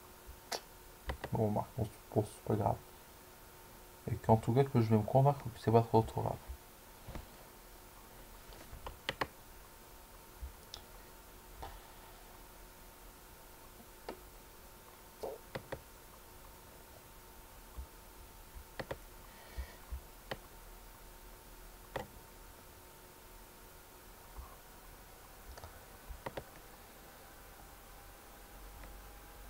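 A computer chess game clicks softly as pieces are moved.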